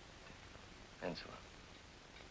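A young man speaks briefly.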